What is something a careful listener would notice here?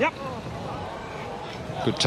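A crowd murmurs and claps outdoors.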